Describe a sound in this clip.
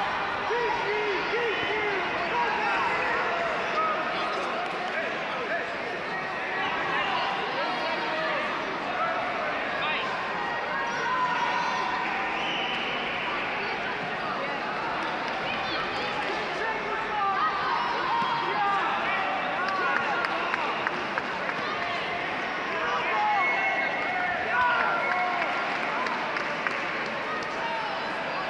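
A large crowd chatters throughout, echoing in a big hall.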